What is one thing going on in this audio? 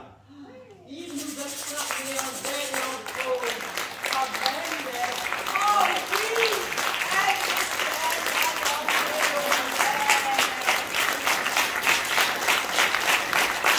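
A crowd claps along in a steady rhythm.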